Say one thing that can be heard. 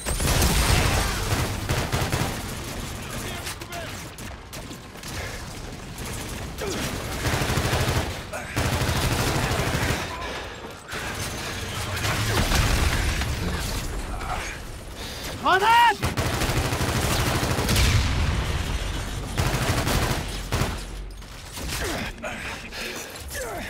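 Explosions rumble and boom nearby.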